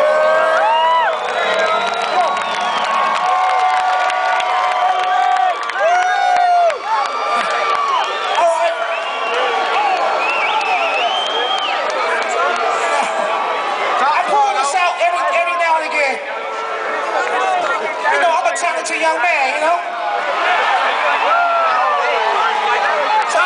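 A crowd cheers and screams close by.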